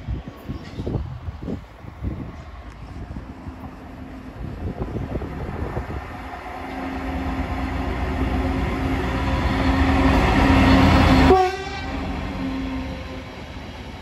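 A diesel locomotive approaches with a deep engine roar that grows louder, then passes.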